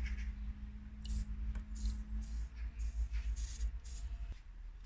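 An aerosol can sprays with a short hiss.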